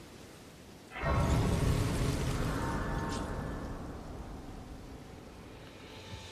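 A deep shimmering whoosh swells up suddenly and slowly fades.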